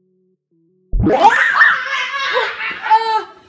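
A young boy shrieks with excitement.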